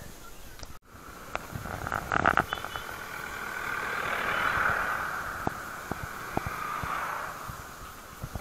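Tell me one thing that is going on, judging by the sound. A small truck drives past close by, its engine rising and fading.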